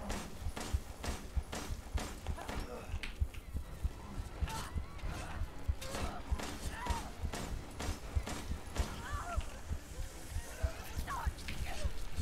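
A pistol fires repeatedly.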